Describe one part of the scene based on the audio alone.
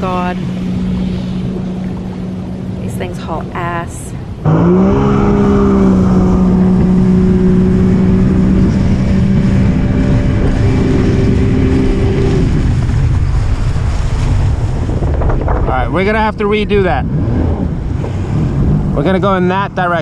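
Water rushes and splashes against a hull.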